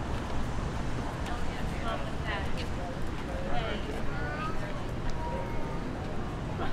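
A crowd of people chatters nearby on a busy walkway.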